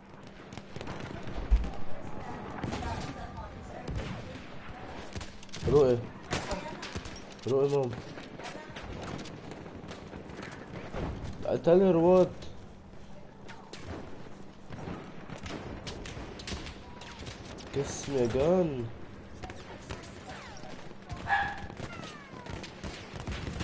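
Rifle shots crack in a video game.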